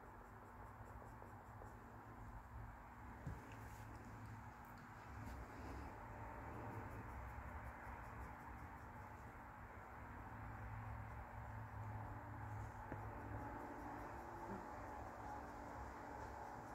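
A pencil lightly scratches across skin.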